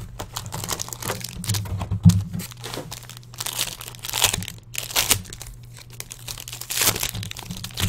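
Plastic wrapping crinkles and rustles as it is torn open.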